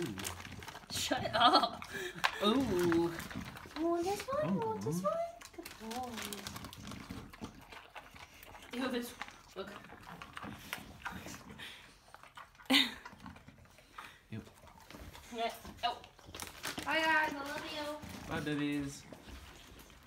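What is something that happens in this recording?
A small dog whines and yelps in high, bending cries.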